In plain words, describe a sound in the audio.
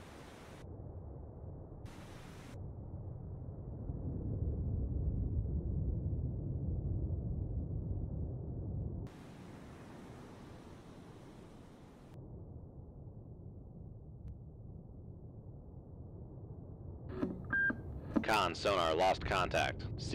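Water rumbles deep and muffled underwater.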